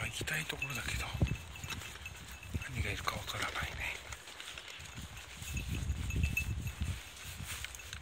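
Dogs rustle through tall dry grass.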